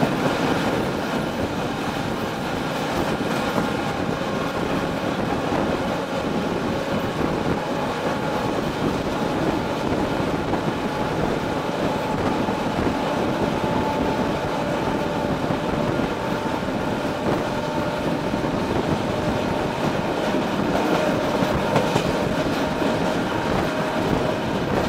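A train engine drones steadily.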